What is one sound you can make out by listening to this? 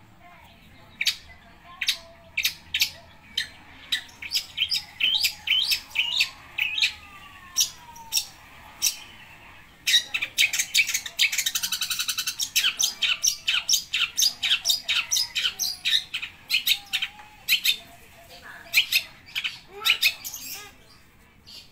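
A caged songbird sings loud, sharp, rapid chirps close by.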